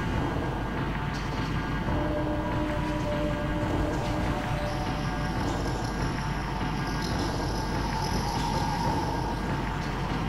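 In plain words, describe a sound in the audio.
Footsteps thud on wooden floorboards and stairs.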